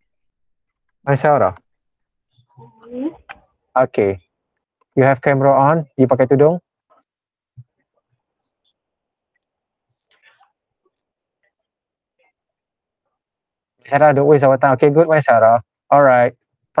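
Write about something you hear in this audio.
A man speaks calmly through an online call microphone, in short bursts with pauses.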